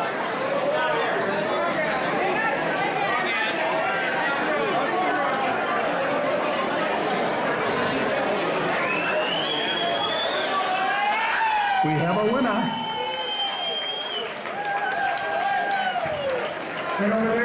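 A large crowd chatters loudly in an echoing hall.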